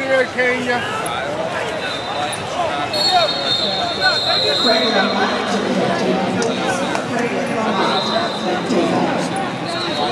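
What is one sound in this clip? A crowd of voices chatters and shouts in a large echoing hall.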